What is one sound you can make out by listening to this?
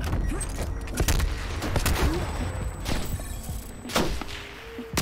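Gunshots bang in quick bursts and echo.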